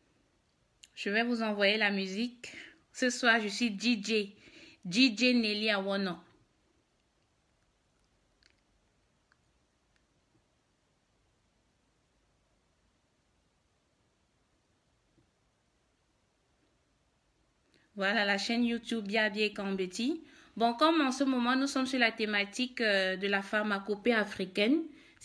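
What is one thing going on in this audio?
A woman speaks calmly and warmly, close to the microphone.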